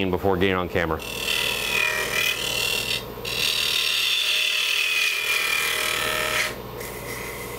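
A chisel scrapes against spinning wood with a hissing rasp.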